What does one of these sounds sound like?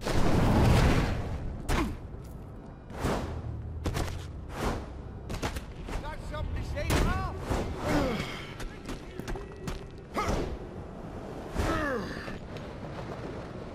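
A body thuds as it climbs and lands on a wall.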